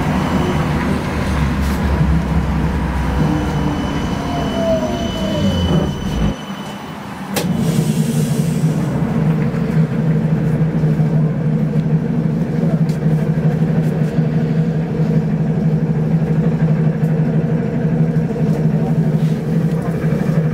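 Traffic rumbles along a busy road outside.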